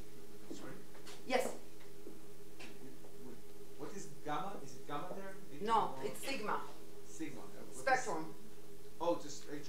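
A woman lectures calmly.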